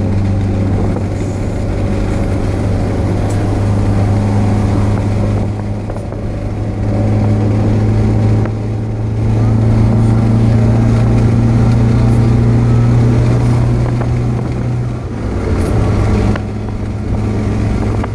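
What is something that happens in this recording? Road noise rumbles under the moving car.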